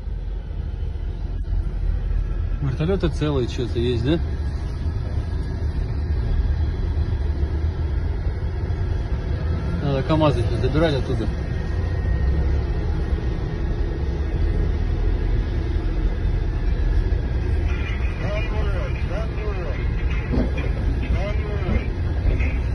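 A car engine rumbles steadily as a car drives along a road.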